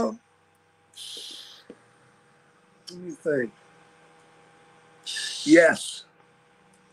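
An elderly man sniffs and breathes heavily.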